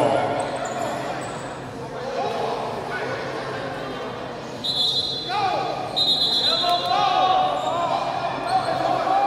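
A small crowd murmurs in a large echoing hall.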